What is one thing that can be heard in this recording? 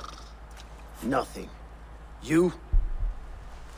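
A man answers briefly in a low voice.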